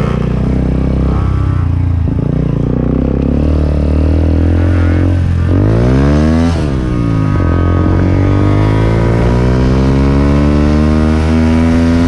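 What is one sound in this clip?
A motorcycle engine rumbles up close as the bike rides along.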